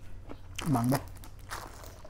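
A plastic bag crinkles up close.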